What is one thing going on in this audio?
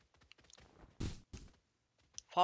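A football is struck hard with a thud.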